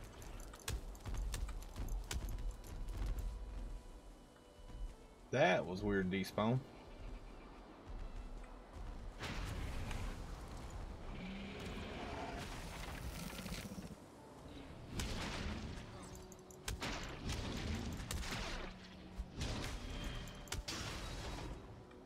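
Fiery blasts burst and crackle against a beast.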